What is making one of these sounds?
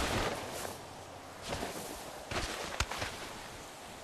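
A rider crashes hard onto rocky ground.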